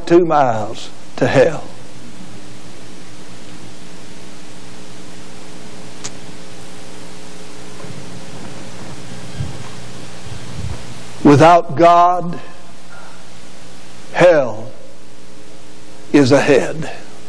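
A middle-aged man preaches with feeling through a microphone in a large echoing hall, with long pauses.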